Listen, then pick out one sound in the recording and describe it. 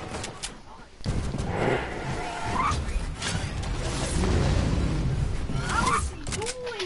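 A glider whooshes through the air.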